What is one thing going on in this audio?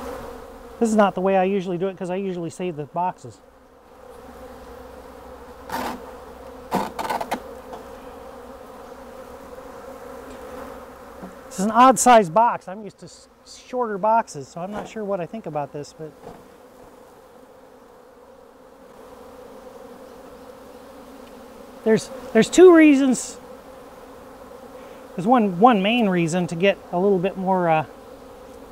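A man speaks calmly, in short bursts.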